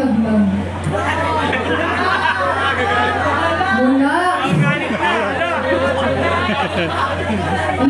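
A man speaks with animation through a microphone over loudspeakers.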